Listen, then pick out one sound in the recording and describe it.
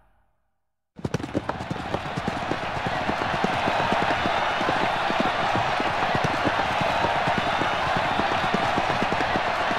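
A large crowd roars in the stands.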